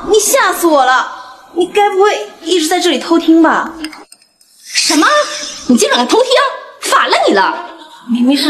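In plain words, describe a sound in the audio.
A middle-aged woman speaks sharply and accusingly, close by.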